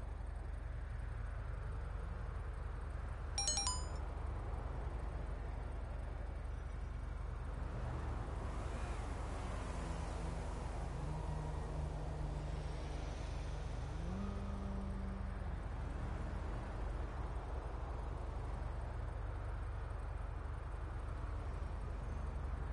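A motorcycle engine hums steadily at low revs.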